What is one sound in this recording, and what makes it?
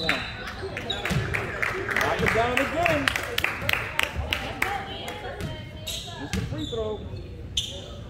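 Spectators shout and cheer from the sidelines.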